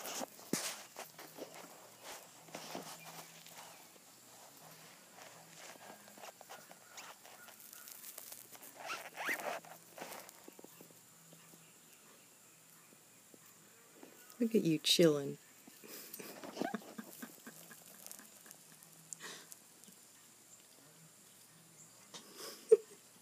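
A gray squirrel gnaws and nibbles on a piece of apple.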